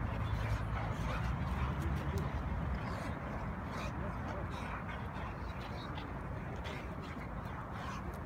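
Two dogs growl and play-fight.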